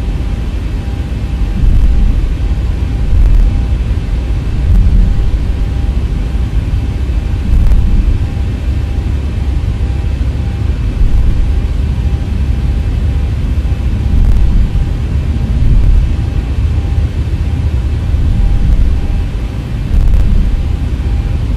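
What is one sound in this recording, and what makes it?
A jet engine hums steadily.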